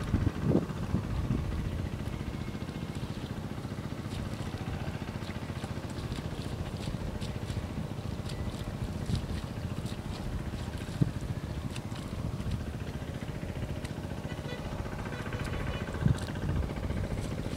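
A two-wheel walk-behind tractor chugs in the distance.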